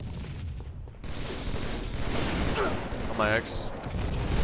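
An assault rifle fires a rapid burst of gunshots.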